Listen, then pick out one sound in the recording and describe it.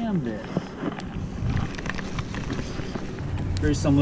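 A fishing reel clicks as its handle is wound.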